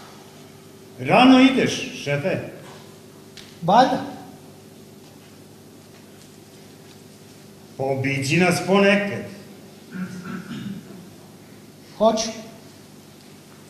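A man speaks loudly and with feeling in a large echoing hall.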